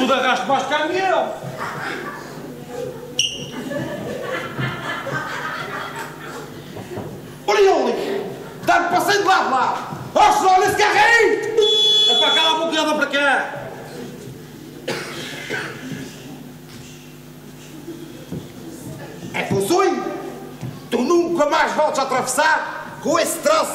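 A group of men sings together on a stage, heard in a large hall.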